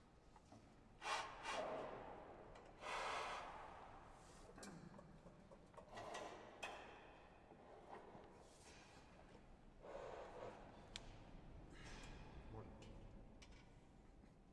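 A man speaks calmly in an echoing hall.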